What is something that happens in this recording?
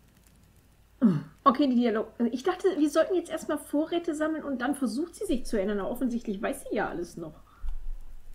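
A woman talks close to a microphone with animation.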